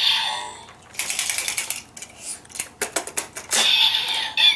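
Plastic toy parts click and snap.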